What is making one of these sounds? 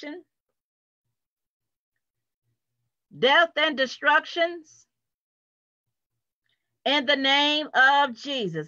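A woman speaks with animation over an online call, close to the microphone.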